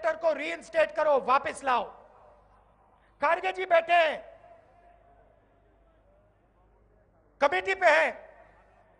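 A man speaks forcefully into a microphone over loudspeakers, in short bursts with pauses.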